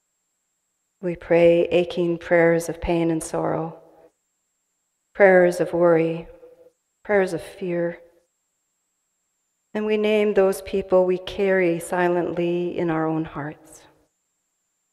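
An adult speaks calmly and slowly through a microphone, with pauses.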